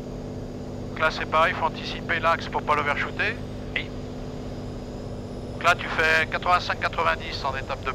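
A man speaks over a headset intercom in short bursts.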